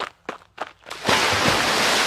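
A stream trickles and gurgles softly.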